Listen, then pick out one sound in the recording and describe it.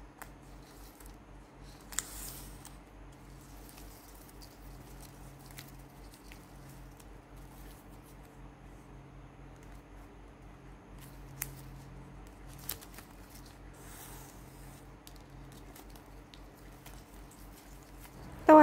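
Plastic ribbon rustles and crinkles as hands fold it.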